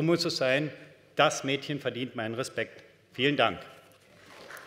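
A middle-aged man speaks calmly into a microphone in a large echoing hall.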